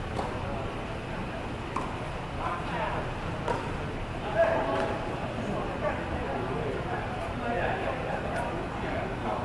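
Tennis balls are struck with rackets, echoing in a large open space.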